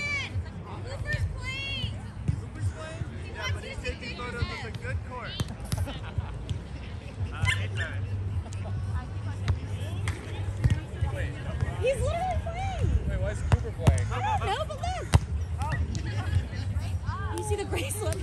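Young men and women call out and shout to each other outdoors.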